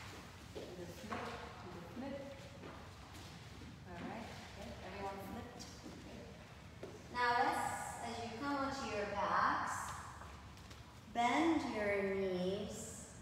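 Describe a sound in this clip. A woman speaks calmly and clearly, giving slow instructions.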